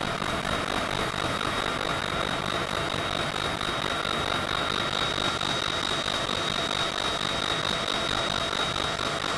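Jet engines whine and roar steadily.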